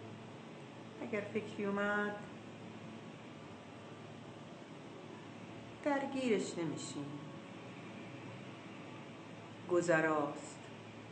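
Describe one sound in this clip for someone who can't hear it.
An older woman speaks slowly and calmly in short phrases, heard close through a phone microphone.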